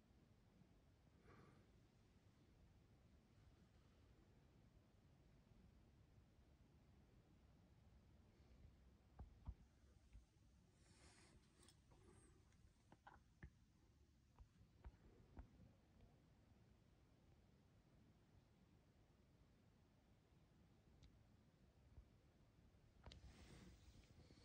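A chimney brush scrapes and knocks inside a chimney.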